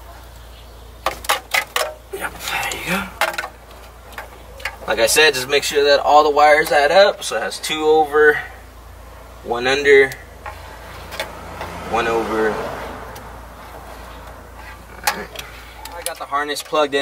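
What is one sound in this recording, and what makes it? Plastic parts click and rattle as they are handled close by.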